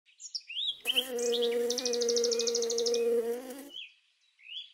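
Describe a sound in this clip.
A bumblebee buzzes steadily up close.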